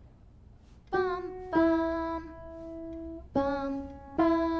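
A piano plays a few simple notes.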